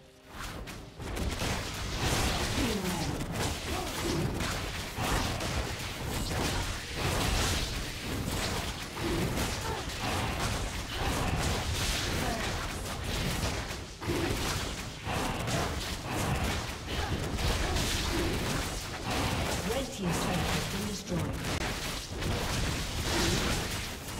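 Magical combat effects whoosh and clash repeatedly.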